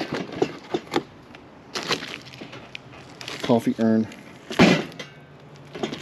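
Plastic wrap crinkles under a hand.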